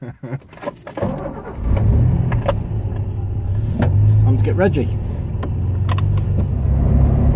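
A car engine runs with a low, steady rumble.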